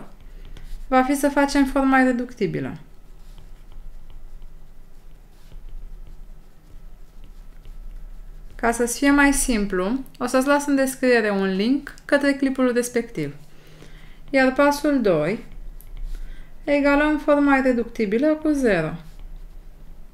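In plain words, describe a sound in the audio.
A young woman speaks calmly and clearly into a close microphone, in short phrases with pauses.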